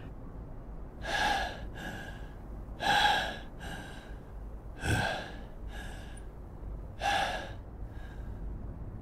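A man pants heavily, out of breath.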